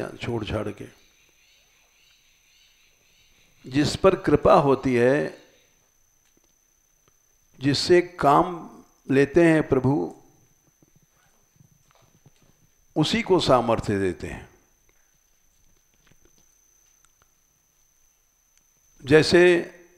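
An elderly man speaks calmly into a close microphone, in short phrases with pauses.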